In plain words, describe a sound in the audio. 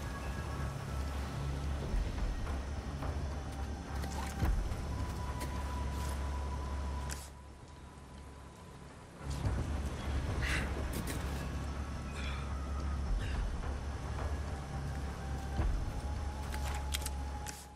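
Footsteps crunch over gravel and dirt.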